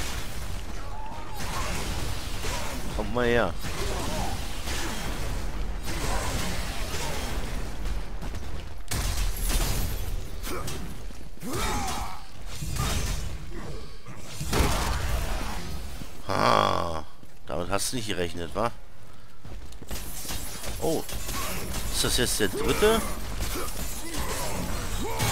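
Heavy blows land with clashing strikes.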